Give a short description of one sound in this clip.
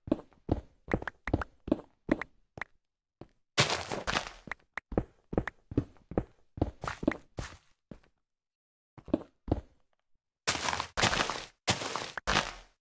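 Blocks of stone and earth break with quick, crunchy knocks, again and again.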